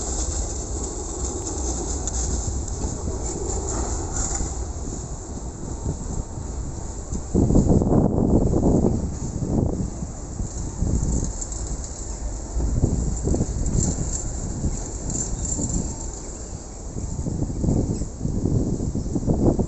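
Wind buffets outdoors in strong gusts.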